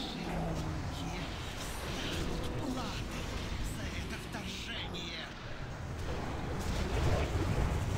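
Battle sound effects clash and crackle in a computer game.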